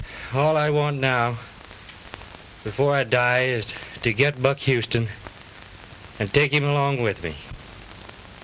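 A man moans and groans feverishly up close.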